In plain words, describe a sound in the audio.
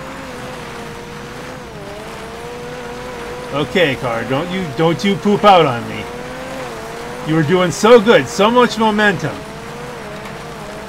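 A sports car engine drones under load as the car climbs a slope.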